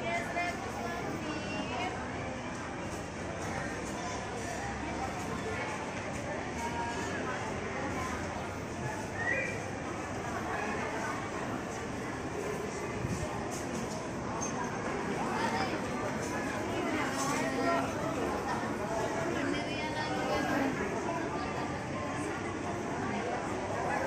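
A crowd of shoppers murmurs and chatters in a large echoing hall.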